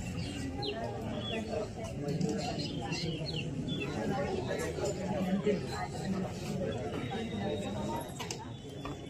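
A crowd of people murmurs and talks nearby outdoors.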